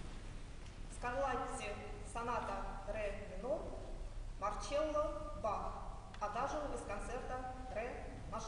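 A young woman sings in a clear voice.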